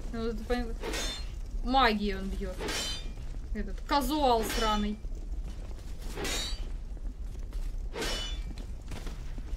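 Weapons swish and strike in a fight.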